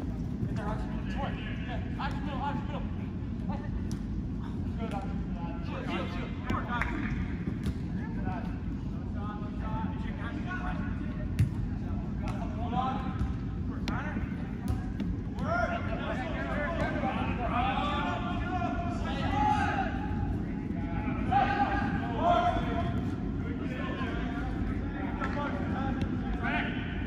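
Young players shout and call out to each other across a large echoing indoor hall.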